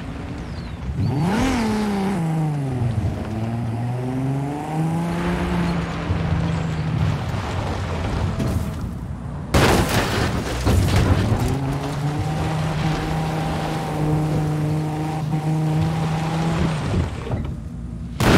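A sports car engine revs and roars.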